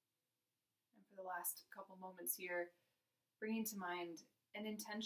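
A young woman speaks calmly and softly close by.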